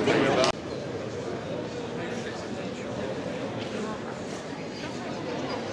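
A crowd of men and women murmurs and chats quietly outdoors.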